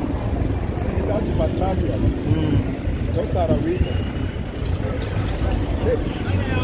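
A crowd of pedestrians chatters on a busy street outdoors.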